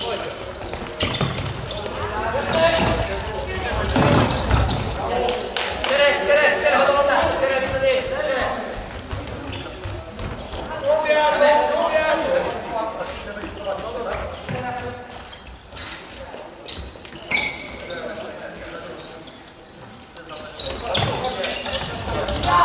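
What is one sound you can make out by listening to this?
Young men shout and call out across an echoing indoor hall.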